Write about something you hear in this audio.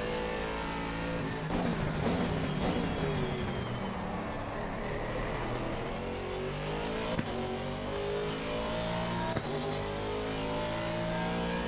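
A racing car engine roars, its pitch falling under braking and rising as it speeds up.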